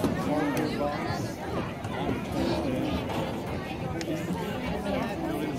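Young women cheerleaders chant in unison.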